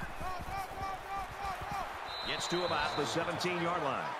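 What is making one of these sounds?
Football players thud together in a tackle.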